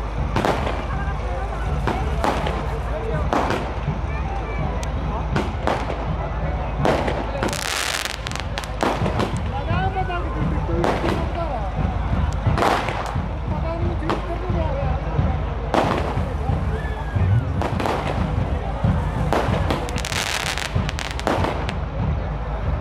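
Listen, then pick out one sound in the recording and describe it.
Fireworks bang loudly overhead, again and again.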